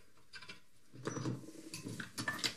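Metal scrapes and rattles as a piece is handled.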